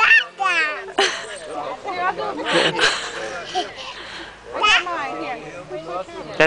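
A toddler girl squeals and laughs excitedly close by.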